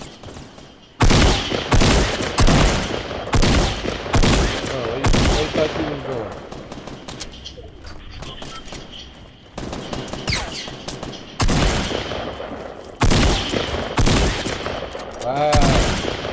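Gunshots ring out in loud, quick bursts.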